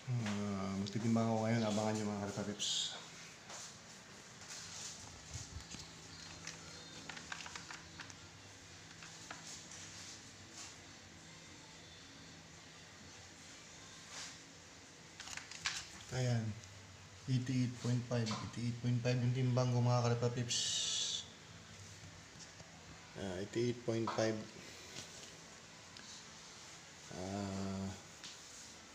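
A middle-aged man talks calmly, close to the microphone.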